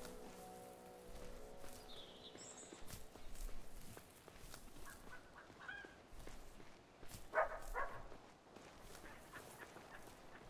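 Footsteps patter on a dirt path.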